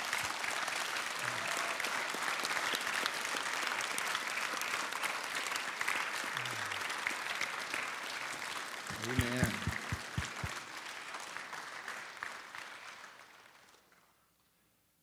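A large crowd applauds steadily, then the applause fades away.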